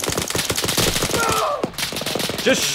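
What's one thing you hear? Rapid gunfire crackles in quick bursts.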